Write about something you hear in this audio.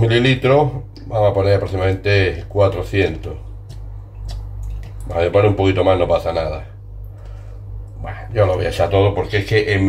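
Liquid pours into a glass bowl.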